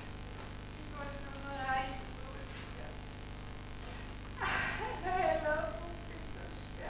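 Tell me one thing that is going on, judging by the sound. A woman speaks on a stage, heard from a distance in a hall.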